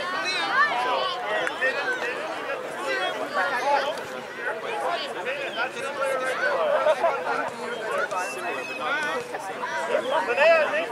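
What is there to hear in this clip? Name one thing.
Young children shout and chatter excitedly outdoors.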